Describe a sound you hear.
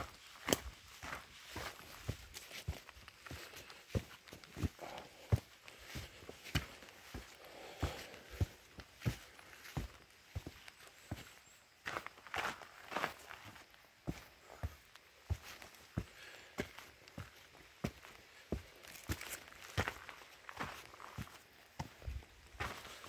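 Footsteps crunch and scuff steadily on a rocky path.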